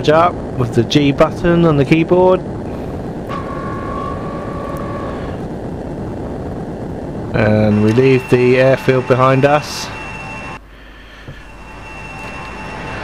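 A jet engine roars steadily as a plane takes off and climbs.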